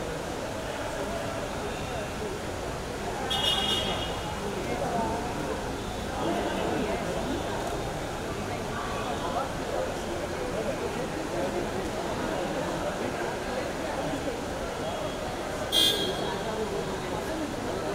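A crowd of men and women chatter all around in a busy, echoing room.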